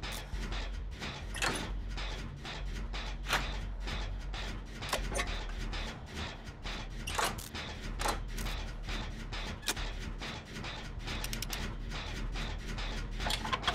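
Metal parts clink and rattle in quick, uneven bursts.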